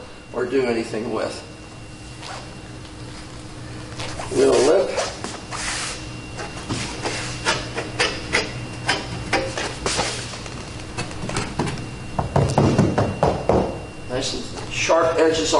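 A middle-aged man talks calmly and explains, close by.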